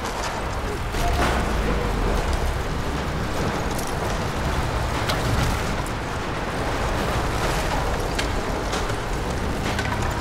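Timber cracks and debris crashes down with a deep rumble.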